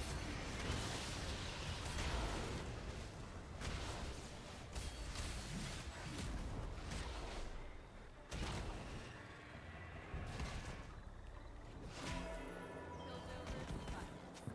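Game spells crackle and blast in a fight.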